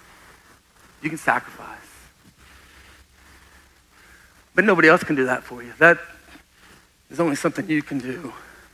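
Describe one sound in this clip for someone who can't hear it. A middle-aged man speaks with animation through a microphone in a large room.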